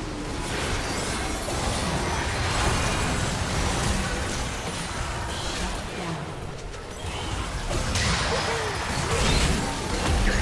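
Magical blasts and explosions crackle and boom in a battle.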